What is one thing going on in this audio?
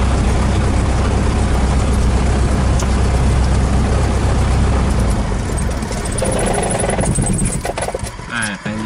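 A propeller engine roars loudly close by, then winds down and stops.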